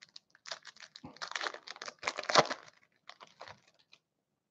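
Foil wrapping crinkles and rustles as hands tear it open.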